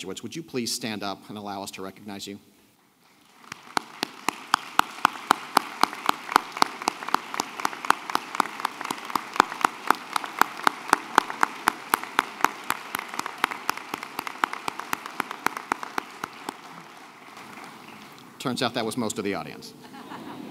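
A man speaks through a microphone and a loudspeaker in a large echoing hall.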